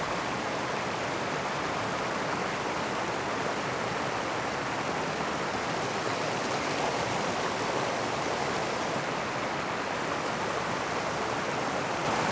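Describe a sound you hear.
Water rushes steadily over a small weir close by.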